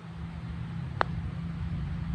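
A golf club taps a ball with a short click.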